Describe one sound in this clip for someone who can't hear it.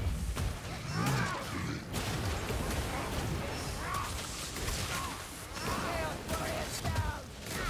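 Blades hack and clash against creatures in quick blows.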